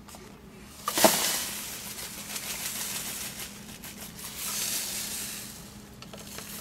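A hand taps dirt out of a plastic dust bin.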